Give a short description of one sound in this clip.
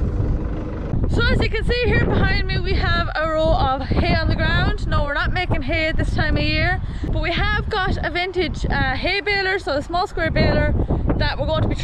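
A young woman speaks to the microphone close up with animation.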